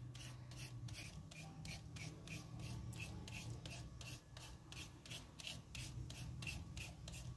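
A grater rasps rhythmically against a carrot, shredding it.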